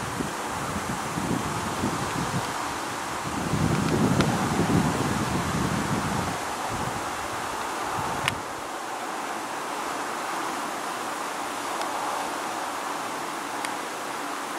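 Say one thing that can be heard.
A jet airliner roars faintly high overhead.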